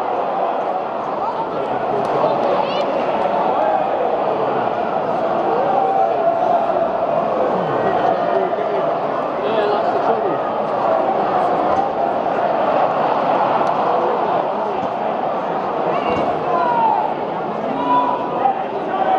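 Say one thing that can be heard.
A large stadium crowd chants and sings loudly all around, echoing under the roof.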